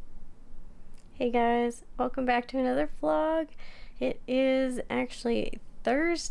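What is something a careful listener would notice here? A young woman talks cheerfully and close up.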